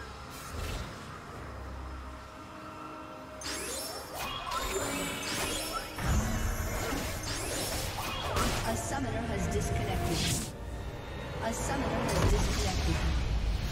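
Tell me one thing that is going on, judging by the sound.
Game spell effects and combat sounds clash and burst rapidly.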